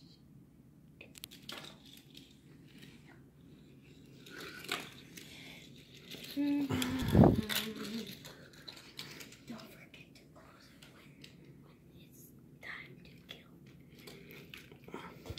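Small toy cars clack and roll on a hard tile floor.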